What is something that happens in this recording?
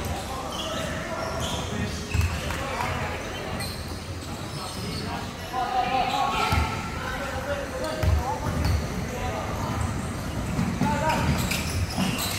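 A crowd of young people talks and calls out in the hall.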